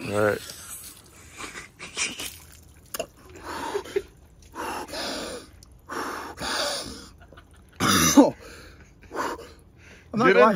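A young man breathes hard and gasps close by.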